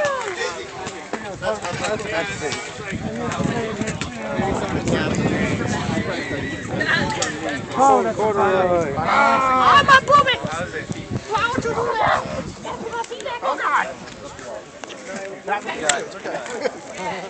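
Several young men talk and laugh close by outdoors.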